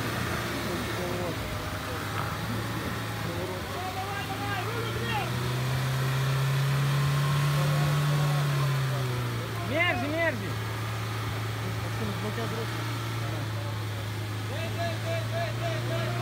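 An off-road vehicle's engine hums low and steady, revving up as it climbs a muddy bank.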